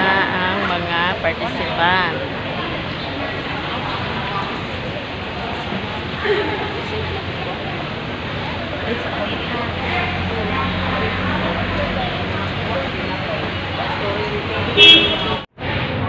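A young woman talks cheerfully, close to the microphone.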